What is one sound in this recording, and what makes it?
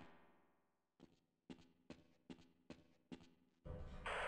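Footsteps clang on metal stairs at a steady pace.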